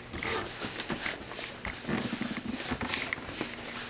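Paper pages rustle as a book is leafed through.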